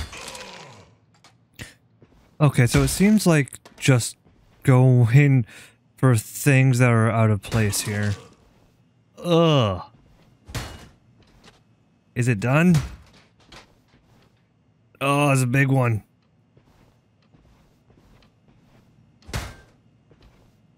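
Furniture smashes and breaks apart with loud crashes.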